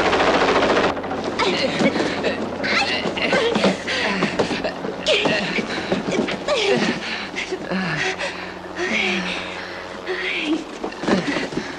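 Cardboard boxes rustle and bump as they are pushed about.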